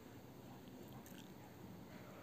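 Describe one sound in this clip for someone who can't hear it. Scissors snip once, close by.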